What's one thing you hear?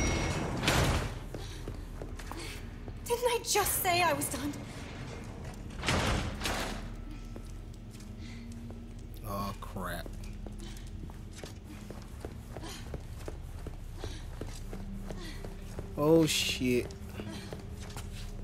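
Footsteps echo on a hard stone floor.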